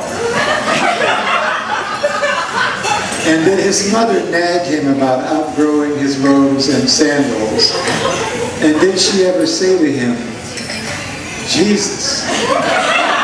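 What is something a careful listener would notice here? An elderly man reads aloud expressively into a microphone.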